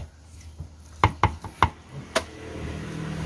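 Metal bowls clink and knock together.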